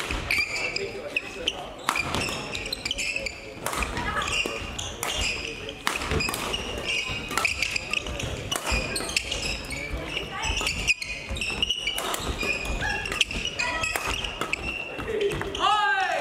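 Rackets strike a shuttlecock with sharp pops in a large echoing hall.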